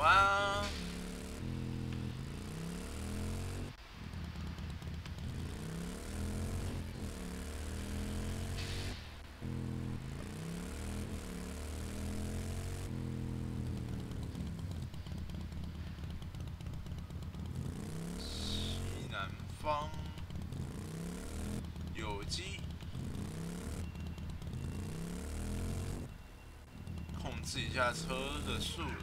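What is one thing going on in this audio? A motorbike engine rumbles and revs up and down steadily.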